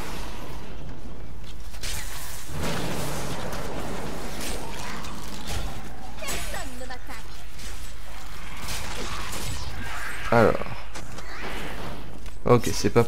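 Magic blasts crackle and burst in a fierce fight.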